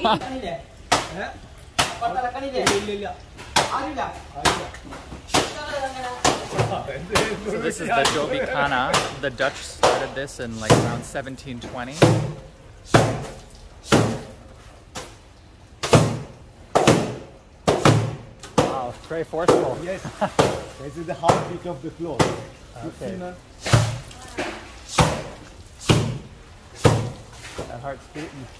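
Wet laundry is slapped hard against stone again and again, with a steady rhythm.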